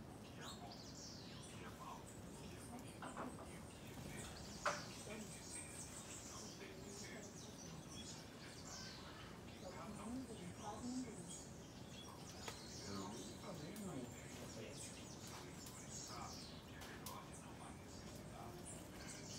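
Birds chirp and twitter all around.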